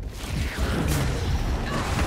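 A sword slashes and strikes flesh with a heavy impact.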